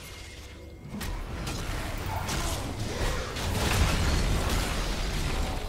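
Video game battle effects whoosh and crash.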